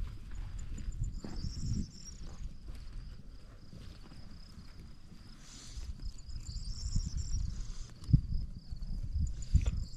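Shears snip through sheep wool in short clicks.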